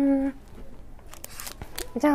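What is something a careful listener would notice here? Candy wrappers crinkle and rustle as a hand rummages through them.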